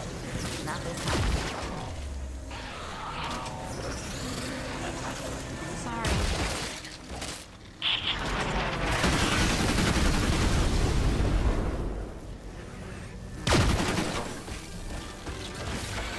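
Heavy blasts boom and crackle.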